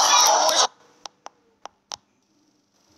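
A young woman claps her hands.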